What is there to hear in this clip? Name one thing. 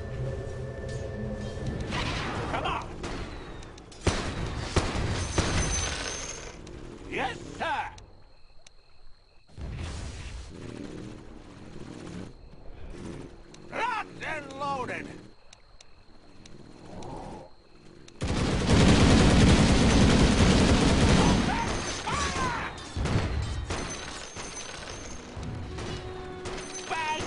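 Game combat sound effects clash and burst.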